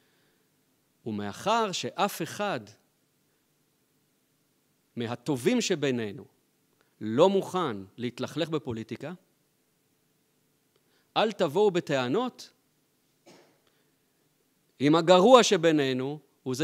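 A middle-aged man speaks calmly into a microphone, with pauses between phrases.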